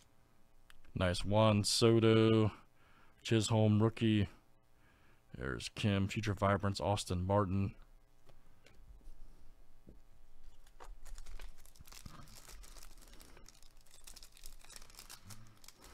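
Cards slide and flick against each other.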